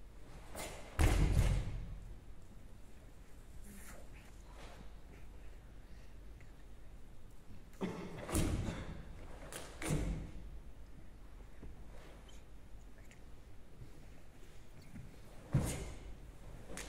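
Bare feet stamp and slap on a wooden stage.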